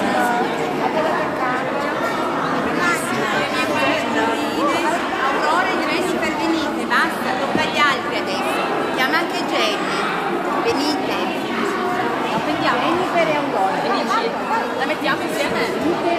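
A woman speaks warmly up close.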